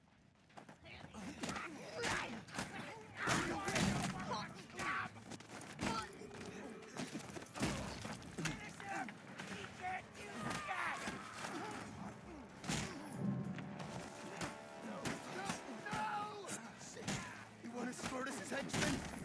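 Men grunt and cry out as they fight.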